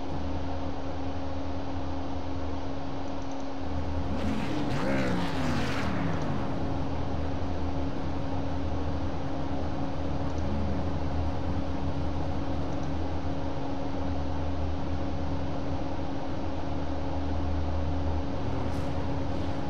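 Race car engines roar as cars speed past.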